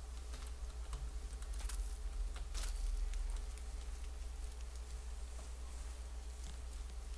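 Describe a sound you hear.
Footsteps crunch over rocky ground.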